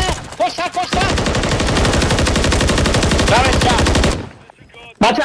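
A rifle fires a rapid, steady burst of shots close by.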